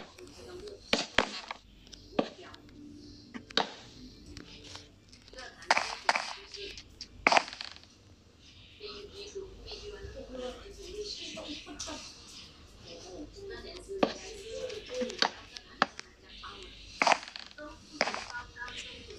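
Wooden blocks knock softly as they are placed one after another.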